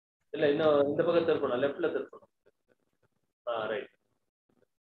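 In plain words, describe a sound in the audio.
An elderly man speaks calmly through an online call.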